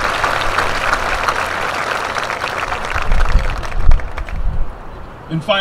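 A crowd applauds and cheers outdoors.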